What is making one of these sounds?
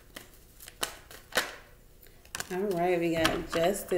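A card is laid down on a wooden table with a soft tap.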